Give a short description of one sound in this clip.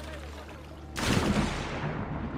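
A figure splashes heavily into water.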